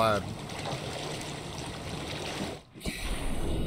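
Waves slosh at the water's surface.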